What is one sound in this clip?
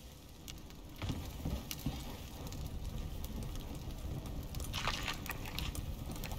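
A fire crackles in a hearth.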